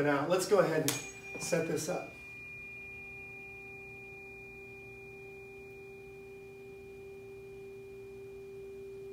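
A steady high tone sounds from a loudspeaker.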